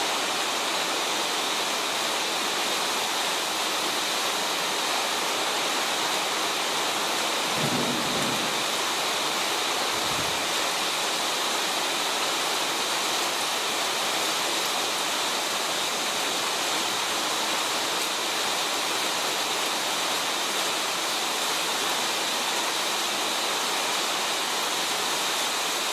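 Heavy rain pours down hard.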